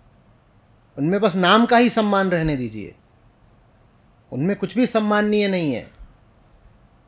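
A middle-aged man speaks with animation into a microphone, in two short bursts.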